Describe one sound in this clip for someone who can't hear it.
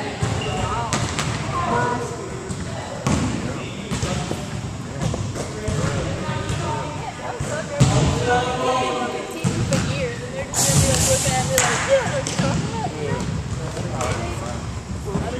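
Young men and women call out to each other in a large echoing hall.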